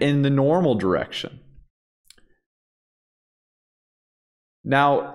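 A man speaks calmly and clearly into a close microphone, with pauses.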